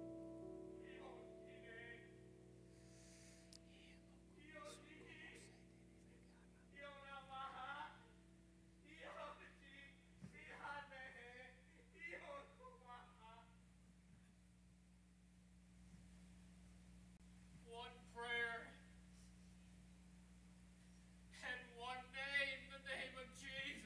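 An elderly man speaks with animation through a microphone and loudspeakers in a large hall.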